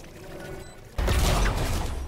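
A gun fires in a quick burst.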